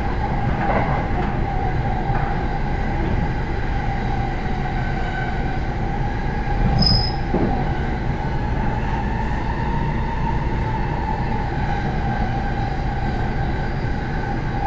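Train motors whine with a steady hum.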